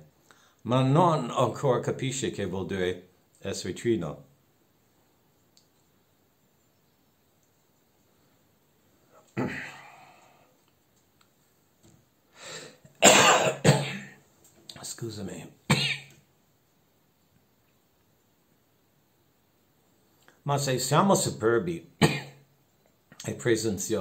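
An elderly man speaks calmly and close, as if over an online call, with pauses.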